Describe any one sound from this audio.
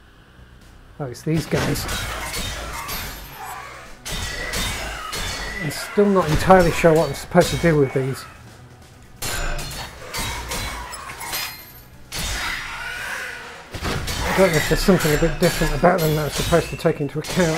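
Swords slash and clang in a fight.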